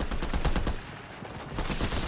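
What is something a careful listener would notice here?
A pickaxe swishes through the air.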